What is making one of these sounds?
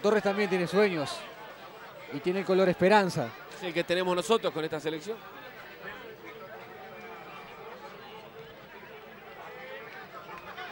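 A crowd murmurs in the stands outdoors.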